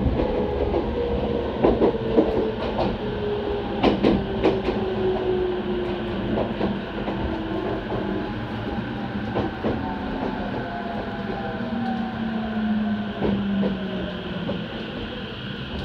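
The motors of an electric commuter train whine, falling in pitch as the train brakes.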